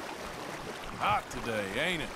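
A man speaks in a loud, drawling voice.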